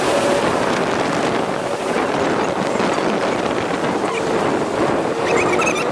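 Water splashes and rushes behind a boat.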